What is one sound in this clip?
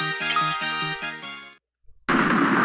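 A video game tune plays with bright, chiming notes and then stops.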